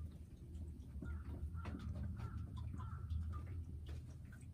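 A hen clucks softly nearby.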